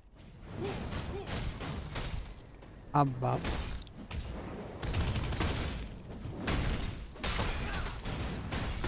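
Sword strikes and magic bursts of a video game battle clash rapidly.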